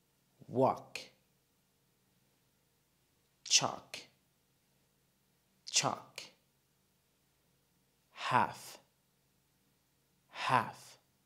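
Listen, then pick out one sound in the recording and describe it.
A man speaks single words clearly into a close microphone, with pauses between them.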